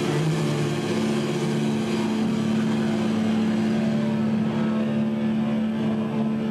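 An electric guitar plays loudly through an amplifier.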